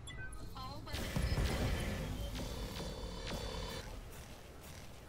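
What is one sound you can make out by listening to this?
Laser beams fire with a loud, humming buzz.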